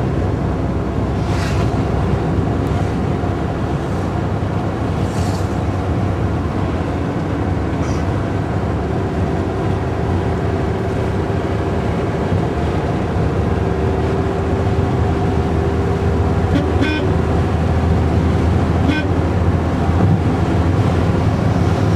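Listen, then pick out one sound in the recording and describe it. Wind and road noise rush past an open car window.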